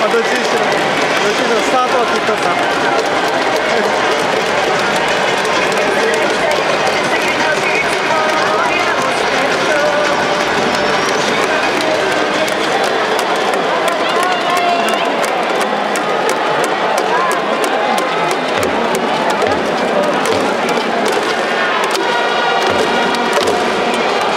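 Clapping noisemakers rattle quickly in time with the crowd.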